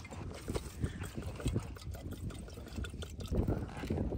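Water pours and gurgles into a narrow glass bottle.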